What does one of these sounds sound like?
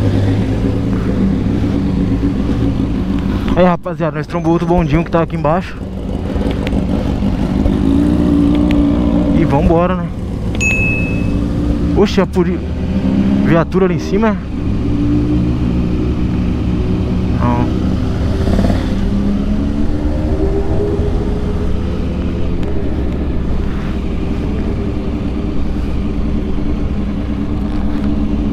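A motorcycle engine rumbles and revs up and down while riding.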